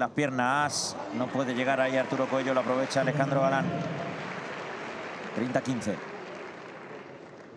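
A crowd cheers and applauds loudly in a large echoing hall.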